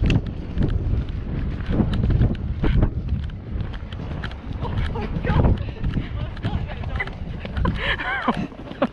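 A horse's hooves thud on soft grass at a steady walk.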